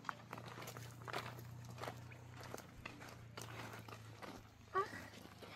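Footsteps crunch on dry, stony ground outdoors.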